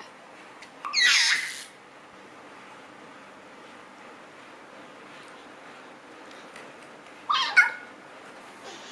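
A baby squeals and babbles close by.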